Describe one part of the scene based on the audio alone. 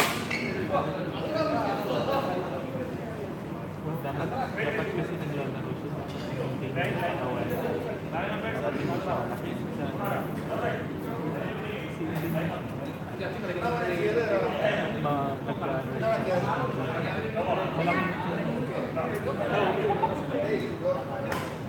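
Several people chatter nearby in an echoing hall.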